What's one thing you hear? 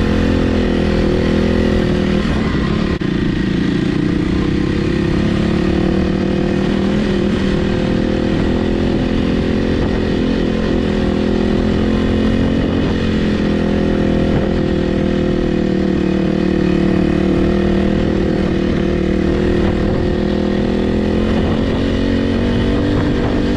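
A dirt bike engine drones loudly close by, rising and falling in pitch.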